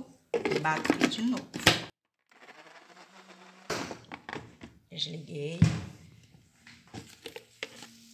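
A plastic lid clatters and clicks.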